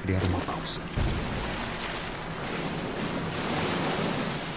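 A grenade bursts with a dull thud and a hissing rush of foam.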